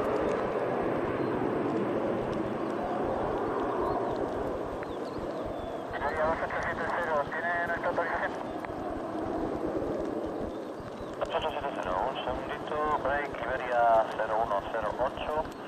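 A jet plane roars distantly as it takes off, heard outdoors.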